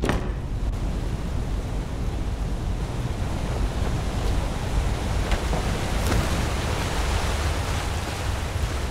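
A waterfall rushes and roars nearby.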